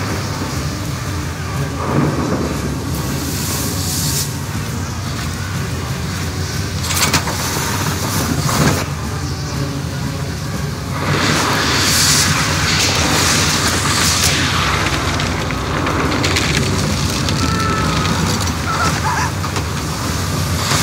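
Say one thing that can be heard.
Rain lashes down.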